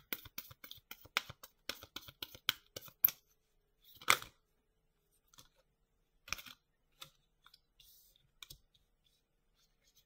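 A card is set down on a cloth-covered table.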